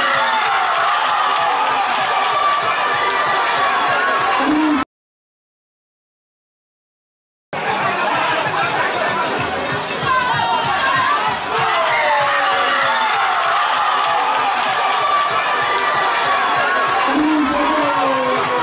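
A crowd cheers and shouts in a large open stadium.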